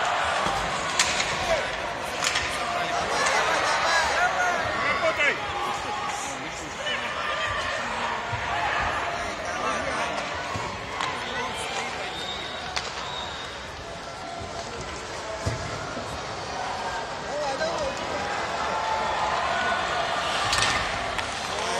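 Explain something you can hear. Hockey sticks click sharply against a puck.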